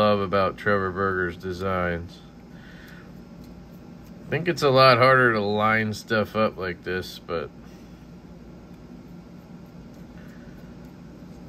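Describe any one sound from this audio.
Small metal parts of a folding knife click and scrape softly as a tool works on them.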